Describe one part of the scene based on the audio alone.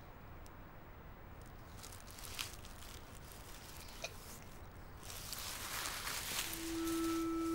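A woman breathes shakily, close by.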